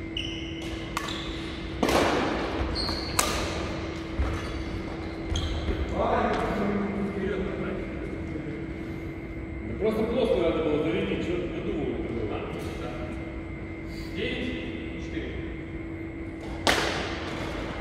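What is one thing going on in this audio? Rackets smack a shuttlecock back and forth in an echoing hall.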